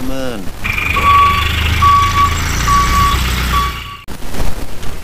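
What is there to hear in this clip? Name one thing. A truck engine rumbles nearby.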